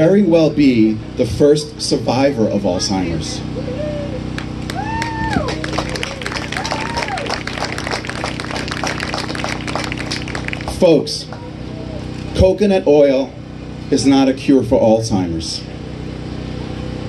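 A man speaks energetically through a microphone and loudspeaker outdoors.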